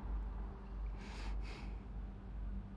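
A young man breathes heavily and shakily, close by.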